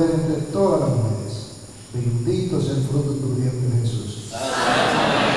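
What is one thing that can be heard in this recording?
An older man speaks slowly into a microphone through loudspeakers.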